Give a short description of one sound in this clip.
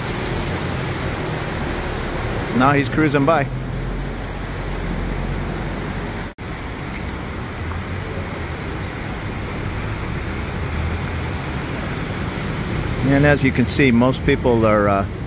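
Water churns and splashes against a boat's hull.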